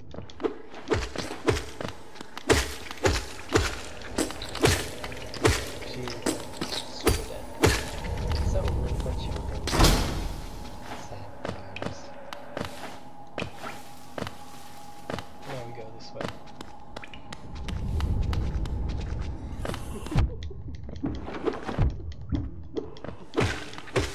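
Sharp slashing hits land quickly, one after another.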